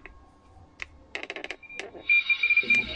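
A knob on a radio receiver clicks as a hand turns it.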